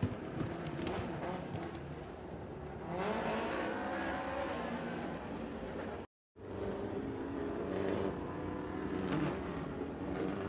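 Race car engines roar loudly as cars speed around a dirt track.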